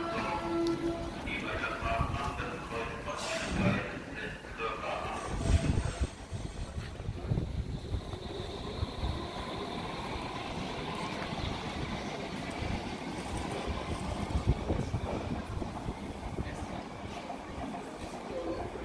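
An electric train's motor hums and whines as it pulls away.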